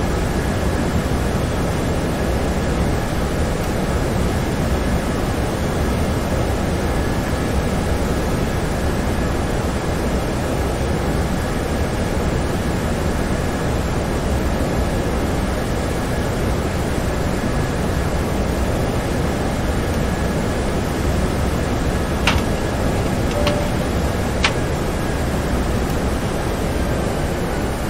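Jet engines hum with a steady, deep roar.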